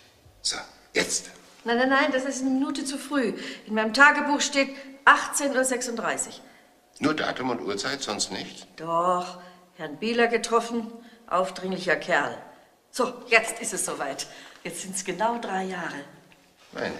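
An elderly woman talks cheerfully nearby.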